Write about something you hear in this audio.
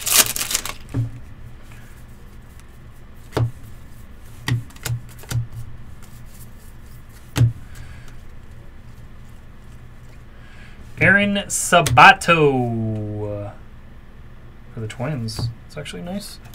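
Trading cards flick and tap against each other.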